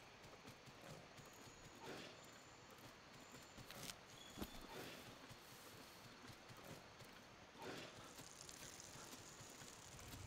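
Footsteps crunch through brush and twigs.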